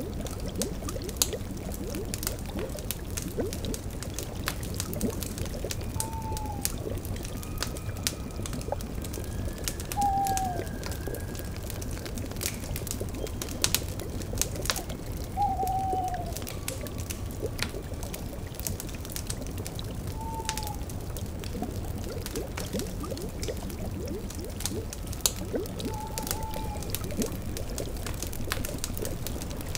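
A cauldron bubbles softly.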